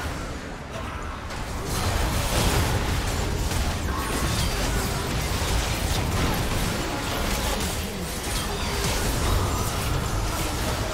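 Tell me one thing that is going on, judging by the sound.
Game spell effects and weapon hits clash in a busy battle.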